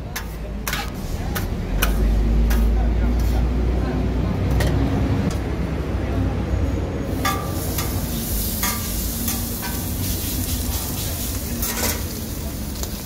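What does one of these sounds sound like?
Metal spatulas scrape and clack on a hot griddle.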